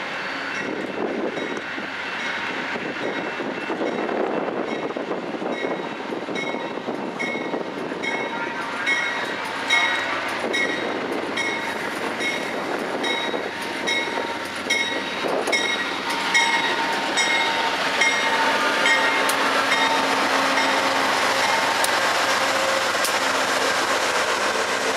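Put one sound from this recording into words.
A passenger train rumbles closer and rolls past on the tracks.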